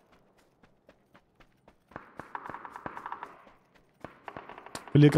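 Footsteps run quickly through dry grass.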